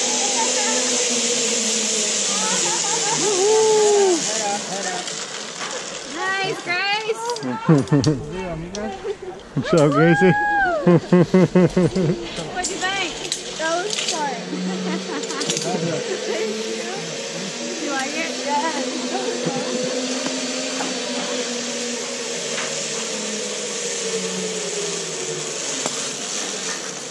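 A zipline pulley whirs steadily along a cable.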